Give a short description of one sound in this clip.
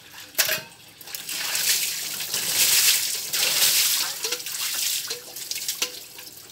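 Water splashes as a man pours it over a motorcycle.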